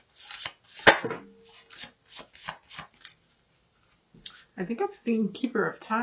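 Playing cards are laid down softly on a table.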